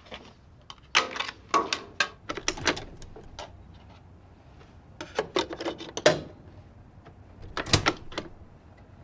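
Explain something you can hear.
A disc player's lid clicks open and shut.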